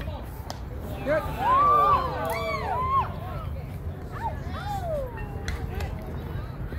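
Players shout and cheer across an open field.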